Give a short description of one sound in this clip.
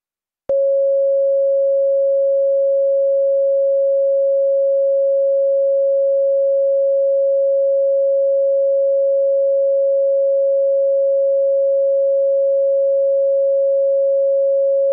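A steady, mid-pitched test tone beeps without a break.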